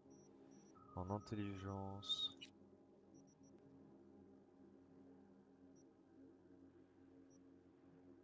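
Electronic menu tones chime and beep as options are selected.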